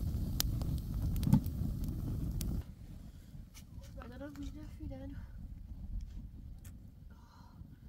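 A wood fire crackles and pops close by.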